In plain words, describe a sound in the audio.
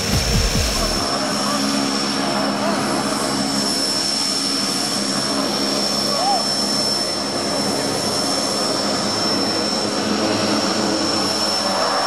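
Several men chat casually nearby.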